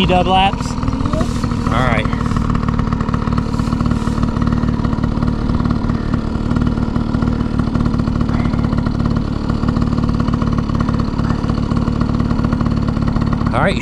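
A dirt bike engine idles steadily close by.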